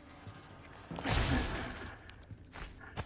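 A wooden crate smashes apart and splinters.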